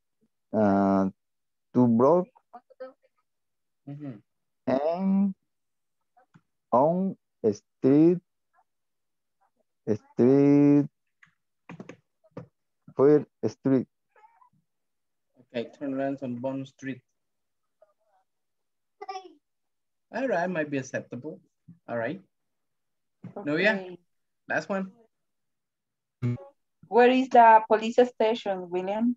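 A woman speaks over an online call, in short phrases with pauses.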